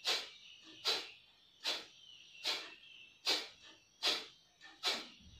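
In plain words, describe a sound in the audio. A man breathes out sharply through his nose in a steady, even rhythm.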